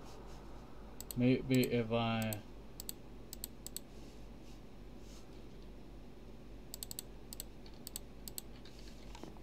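Soft clicks sound as items are moved around a game menu.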